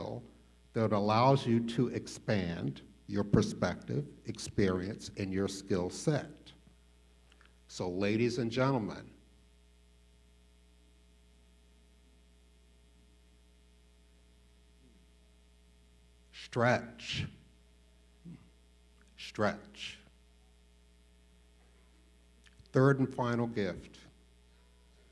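An elderly man speaks with feeling through a microphone in a large echoing hall, pausing between phrases.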